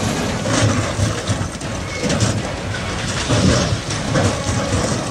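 Water rushes and churns nearby.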